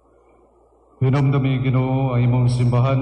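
An elderly man sings a chant into a microphone, heard through a loudspeaker.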